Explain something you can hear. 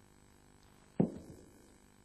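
A bowl drops onto the carpet with a soft thud.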